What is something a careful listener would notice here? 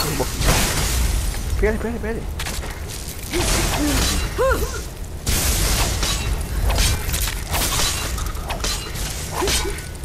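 Bursts of magic crash and whoosh in a fight.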